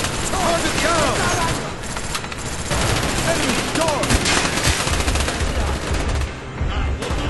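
Rapid gunfire rattles and echoes.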